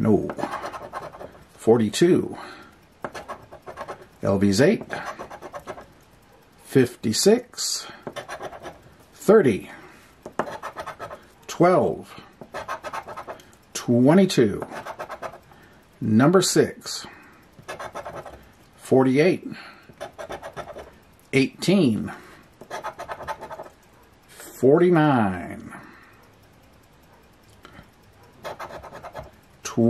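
A handheld scraper scratches the coating off a paper lottery ticket.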